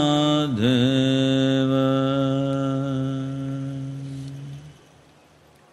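An elderly man chants a long, steady note that slowly fades away.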